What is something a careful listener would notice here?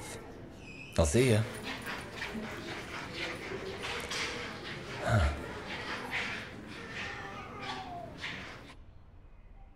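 A man speaks nearby with animation.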